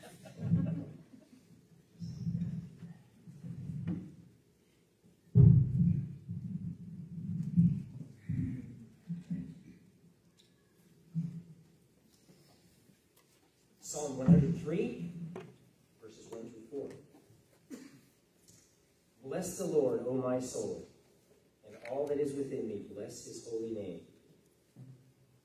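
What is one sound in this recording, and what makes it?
A man speaks calmly through a microphone, with pauses, in a large echoing room.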